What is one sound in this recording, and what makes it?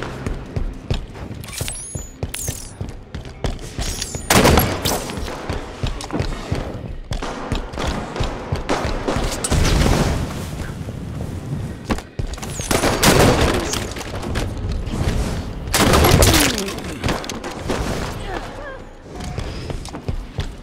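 Gunfire and explosions from a video game ring out in bursts.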